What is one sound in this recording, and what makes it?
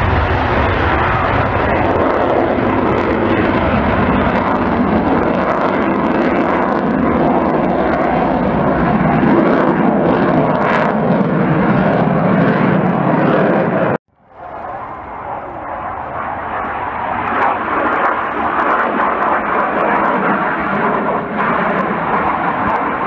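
A twin-engine fighter jet roars overhead.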